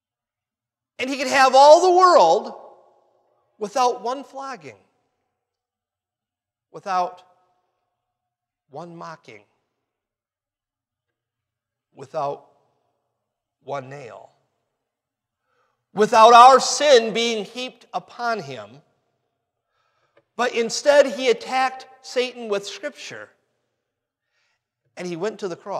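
A man preaches forcefully through a microphone in short bursts, with pauses between phrases.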